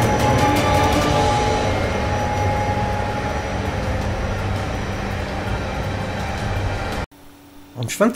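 A steam locomotive rumbles and chugs past, pulling a train.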